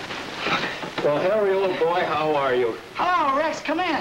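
A second man answers in a wavering, singsong voice.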